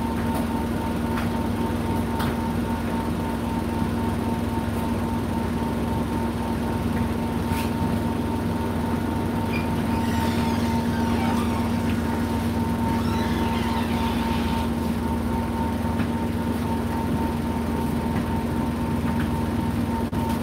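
A tumble dryer hums and rumbles steadily.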